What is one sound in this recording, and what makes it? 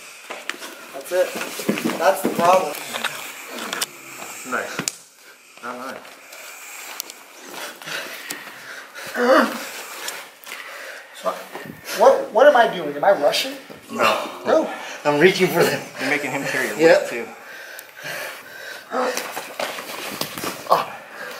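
A man talks calmly, explaining, close by.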